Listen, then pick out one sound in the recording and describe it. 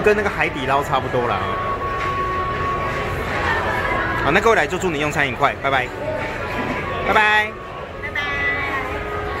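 Voices chatter in the background of a busy room.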